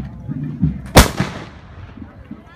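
A blunderbuss fires a single loud, echoing shot outdoors.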